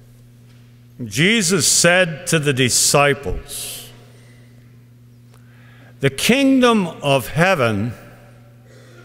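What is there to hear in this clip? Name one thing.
A middle-aged man reads aloud through a headset microphone.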